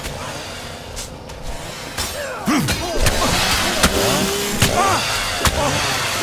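Blades clash and thud in a close fight.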